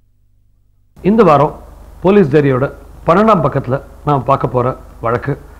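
A man speaks with emphasis, close to the microphone.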